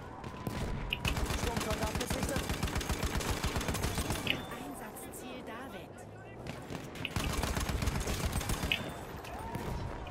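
A machine gun fires rapid bursts at close range.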